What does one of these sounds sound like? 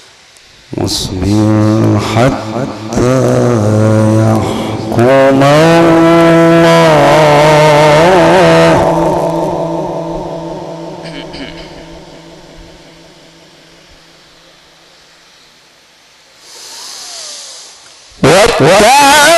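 A man chants in a long, melodic voice through a microphone, with echo in a large space.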